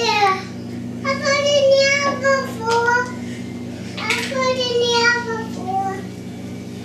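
A toddler babbles in a high voice.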